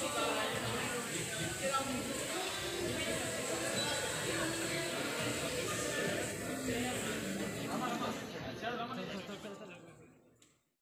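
A crowd of men and women chatters loudly close by.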